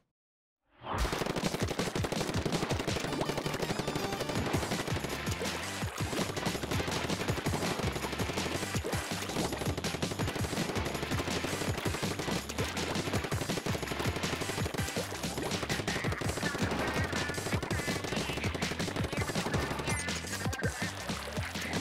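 Paint guns spray and splatter wetly in rapid bursts.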